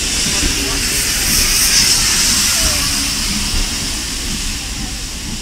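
Steam bursts from beneath a carriage with a loud hiss.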